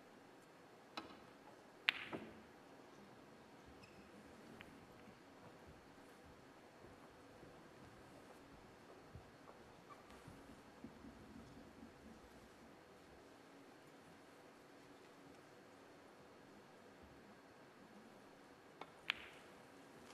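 Snooker balls knock sharply against each other a few times.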